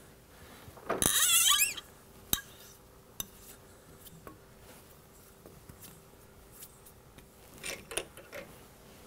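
Metal tools clink and click against a lathe chuck.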